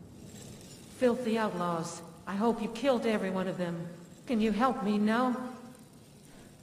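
A young woman speaks angrily.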